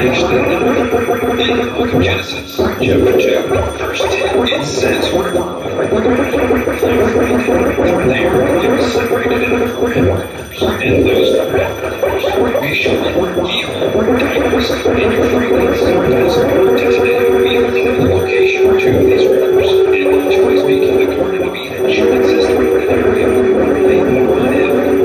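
Amplified guitars play a slow, droning tune in a room.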